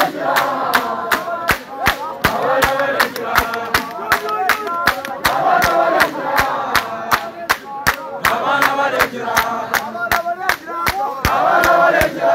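A large crowd sings loudly together outdoors.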